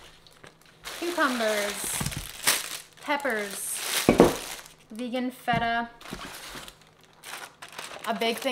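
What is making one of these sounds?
A plastic package crinkles in a hand.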